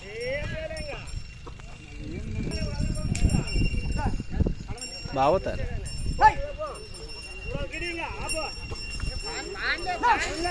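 Several men talk and call out loudly nearby, outdoors.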